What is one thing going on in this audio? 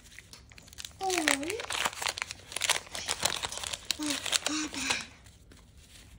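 A paper wrapper crinkles and tears.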